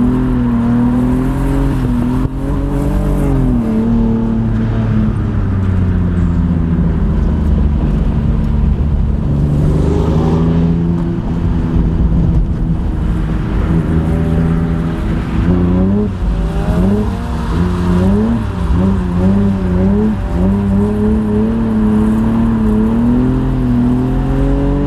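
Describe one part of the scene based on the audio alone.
A car engine roars and revs up and down loudly from inside the car.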